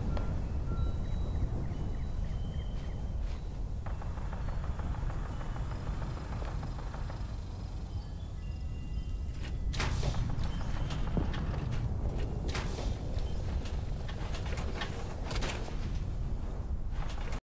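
A huge explosion rumbles deeply and steadily.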